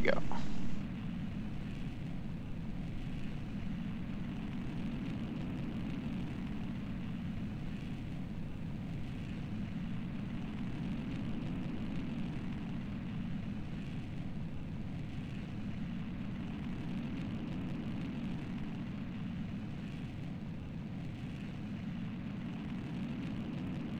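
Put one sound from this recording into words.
A rocket engine roars steadily with a low rumble.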